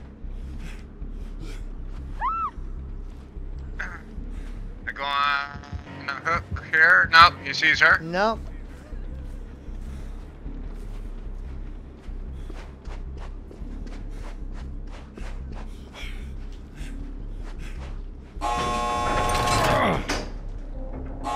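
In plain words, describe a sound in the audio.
Footsteps run quickly over sandy ground.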